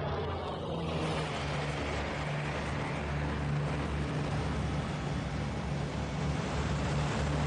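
A large propeller aircraft drones loudly overhead.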